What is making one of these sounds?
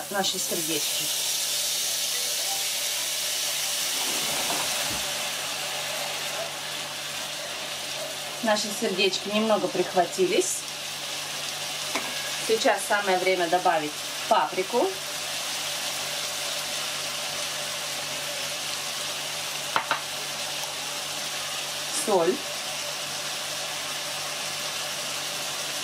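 Food sizzles steadily in a hot frying pan.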